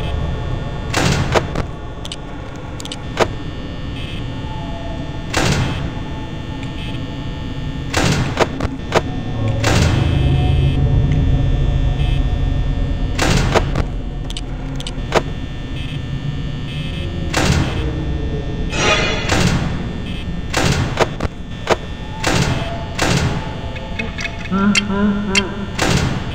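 Buttons click sharply.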